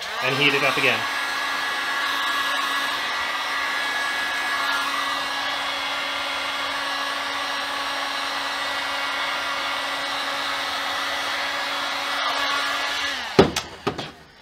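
A drill press whirs steadily and then stops.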